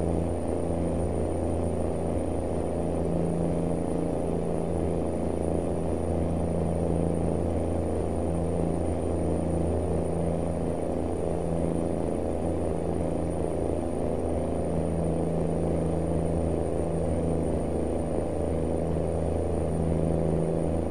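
Tyres roll on a paved road with a low rumble.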